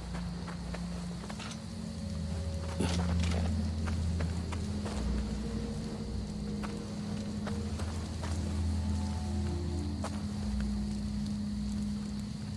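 Footsteps crunch softly on gravel.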